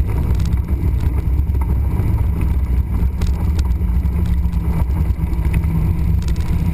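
Wind buffets loudly against the car.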